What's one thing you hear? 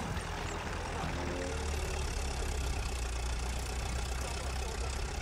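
A tank engine rumbles steadily with clanking tracks.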